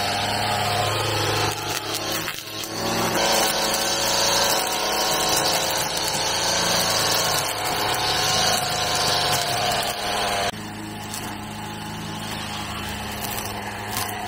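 A brush cutter engine drones and whines steadily nearby.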